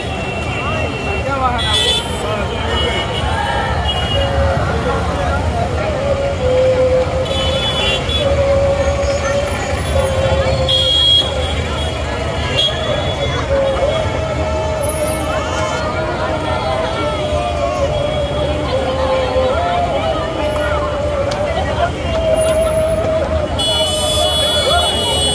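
Many footsteps shuffle on a paved road.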